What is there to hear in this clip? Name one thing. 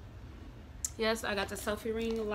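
A young woman speaks close by, calmly.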